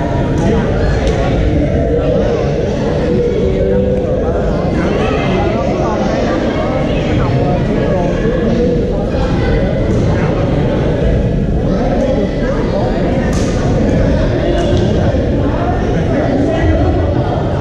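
A crowd of players chatters and calls out across a large echoing hall.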